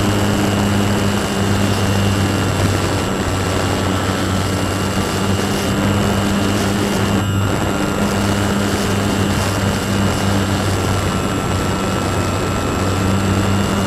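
An electric motor whines steadily as a propeller spins.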